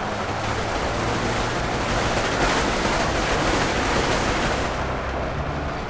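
Explosions boom and rumble in a dense roar of battle.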